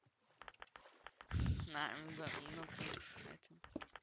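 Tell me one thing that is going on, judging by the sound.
Blocks crack and break in quick hits.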